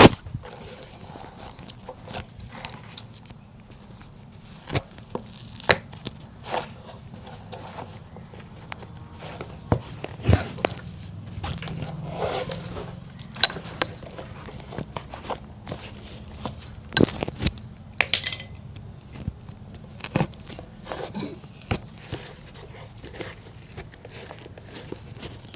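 Thread rasps softly as it is pulled through leather.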